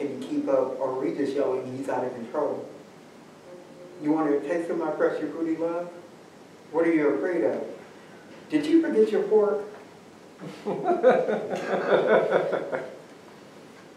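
A man reads aloud from a book with expression, close by.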